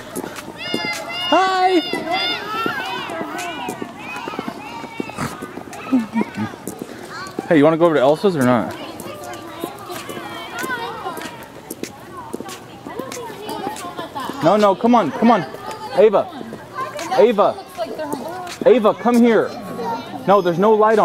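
Children shout and chatter excitedly outdoors.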